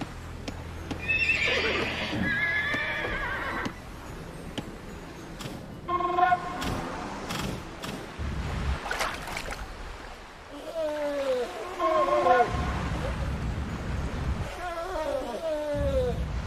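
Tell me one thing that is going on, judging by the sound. War elephants trumpet loudly.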